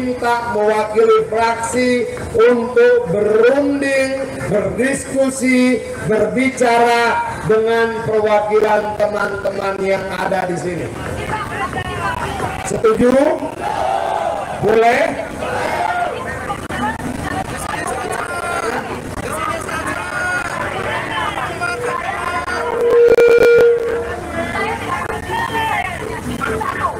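A man shouts a speech through a microphone and loudspeaker outdoors.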